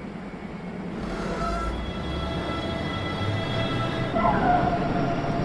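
An electric train pulls away with a rising whine and rumble.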